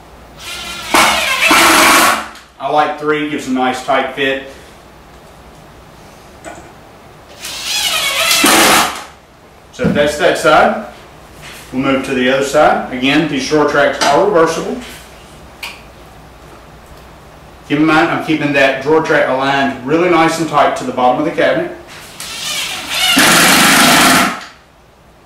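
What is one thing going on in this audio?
A power drill whirs in short bursts, driving in screws.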